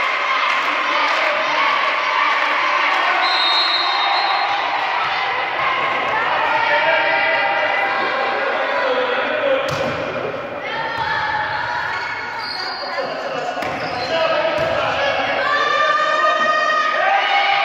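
Young women shout and call to each other in a large echoing hall.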